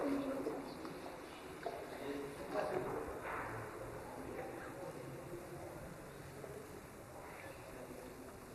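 A crowd of adults murmurs and talks quietly in a large echoing hall.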